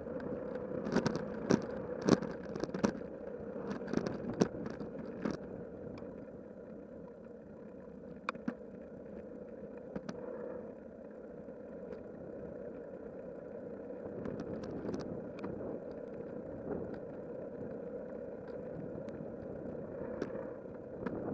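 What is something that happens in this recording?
A bicycle rattles and clatters over bumps in the path.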